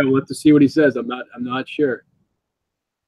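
A man talks through an online call.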